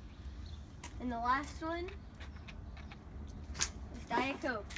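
A young girl speaks close by in a high, lively voice.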